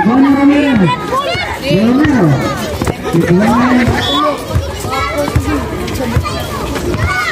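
A crowd of spectators shouts and cheers loudly outdoors.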